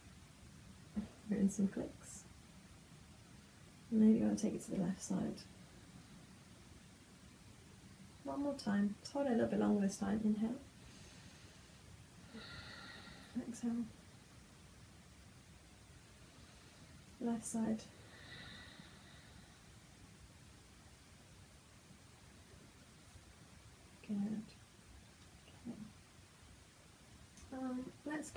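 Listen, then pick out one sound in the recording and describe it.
A young woman speaks calmly and softly nearby, in short phrases with pauses.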